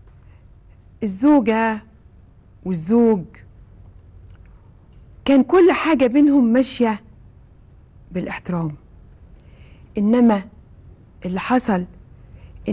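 A woman speaks with animation into a microphone, in short bursts.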